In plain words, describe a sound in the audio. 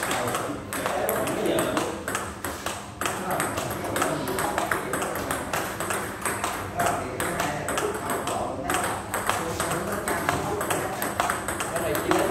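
A ping-pong ball clicks back and forth on paddles and a table in a quick rally.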